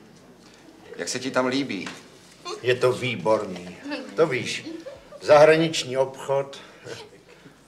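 A group of men and a woman laugh together nearby.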